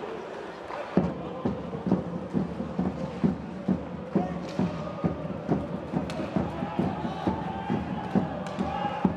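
A crowd claps and drums in a steady rhythm.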